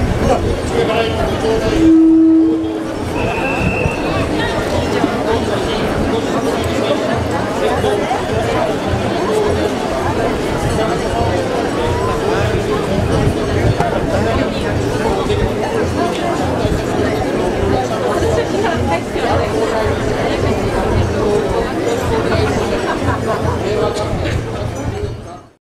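A large outdoor crowd of men and women murmurs and chatters.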